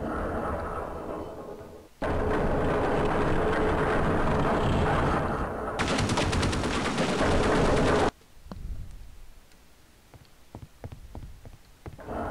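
A young man talks into a headset microphone.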